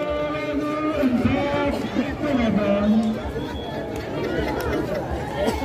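A large outdoor crowd chatters and shouts loudly nearby.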